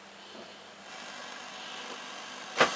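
A television set switches on with a faint rising hiss.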